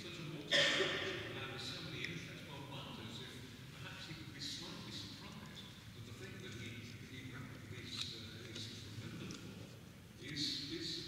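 A middle-aged man speaks calmly into a microphone in a large, echoing hall.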